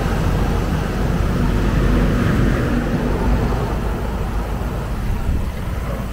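A diesel lorry rumbles past close by.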